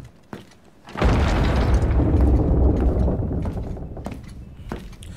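Heavy doors rumble open.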